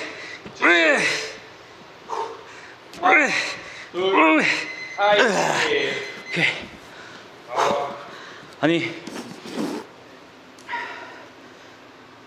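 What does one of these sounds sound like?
A man grunts and groans loudly with effort, close by.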